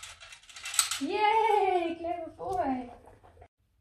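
A dog whines in a high, wavering voice.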